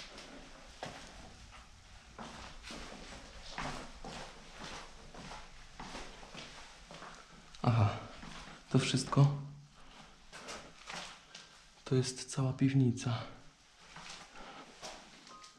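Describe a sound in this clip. Footsteps tread on creaking stairs, close by.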